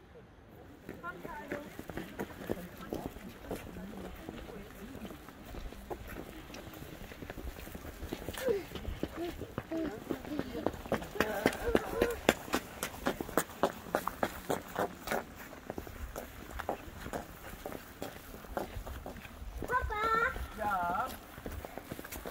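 Men and women talk nearby as they walk.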